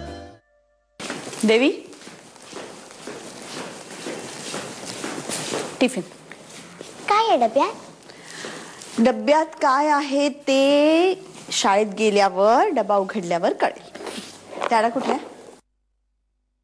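A woman speaks with a raised voice.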